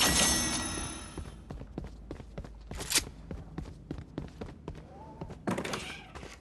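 Footsteps patter quickly on wooden floorboards.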